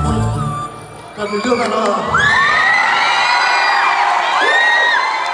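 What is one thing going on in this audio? A crowd of young people cheers and screams loudly in a large echoing hall.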